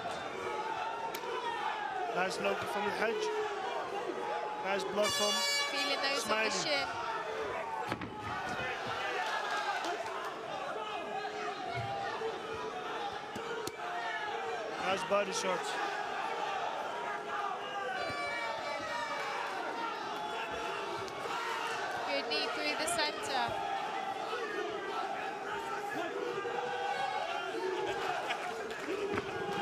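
A crowd cheers and shouts throughout in a large echoing hall.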